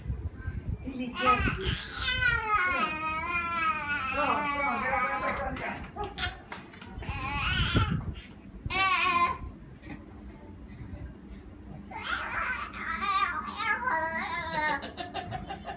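An elderly woman talks to a baby in a high, sing-song voice close by.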